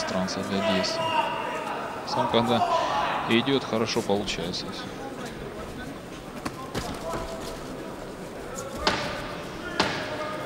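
A crowd murmurs and cheers in a large hall.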